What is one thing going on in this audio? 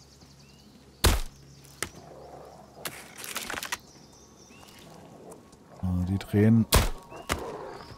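A crossbow twangs as it fires a bolt.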